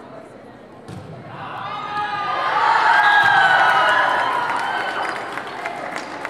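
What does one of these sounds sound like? A crowd of spectators cheers loudly in an echoing gym.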